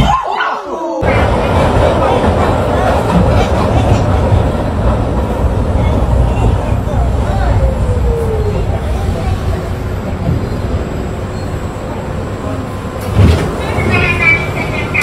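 A subway train rumbles loudly along the tracks.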